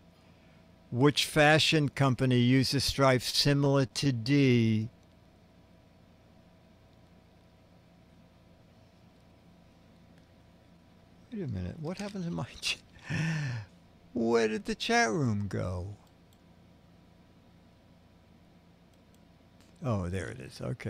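A middle-aged man speaks with animation close to a microphone, in short bursts with pauses.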